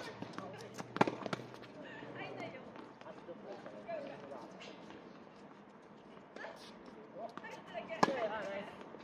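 Tennis rackets hit a ball back and forth with sharp pops.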